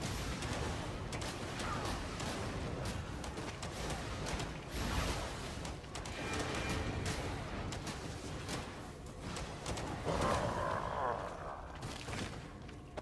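Spells blast and crackle in a game battle.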